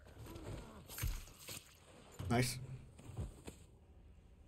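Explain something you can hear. A knife stabs into flesh with heavy wet thuds.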